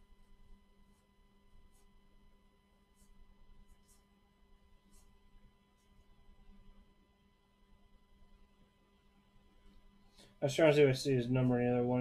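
Stiff cards slide and rustle softly against each other.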